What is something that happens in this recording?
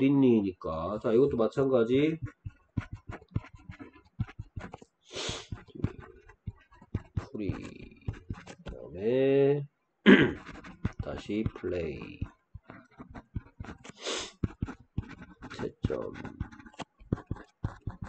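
A pen scratches lightly across paper in short strokes.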